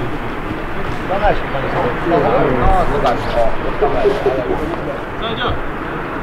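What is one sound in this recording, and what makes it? Men talk briefly at a distance outdoors.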